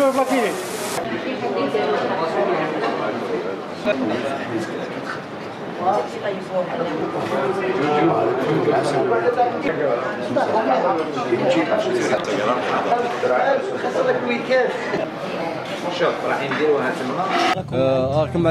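Many people talk and laugh together in a busy room.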